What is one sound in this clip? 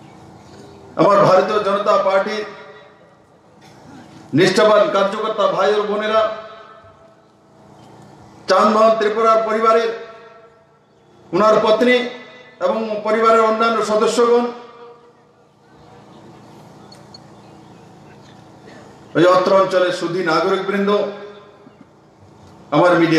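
A man gives a speech forcefully into a microphone, heard through loudspeakers outdoors, in bursts with pauses between them.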